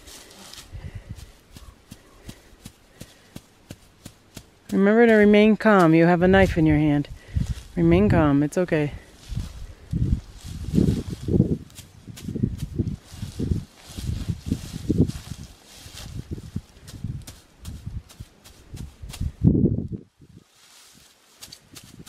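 A hand scrapes and digs in dry soil with soft thumps.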